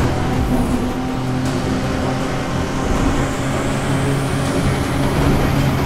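Wind and tyres rush loudly past.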